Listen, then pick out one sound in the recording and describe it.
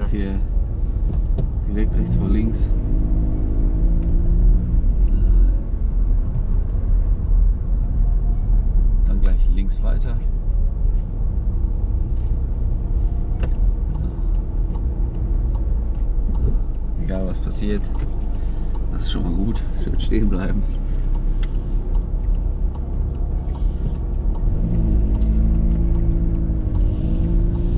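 A young woman talks from the passenger seat nearby.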